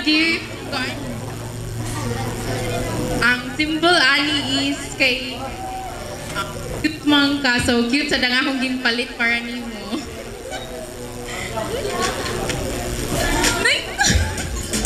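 A young woman speaks warmly through a microphone and loudspeaker in a large room.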